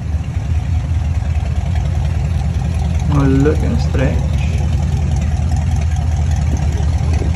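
A car engine rumbles deeply at idle and drives slowly away.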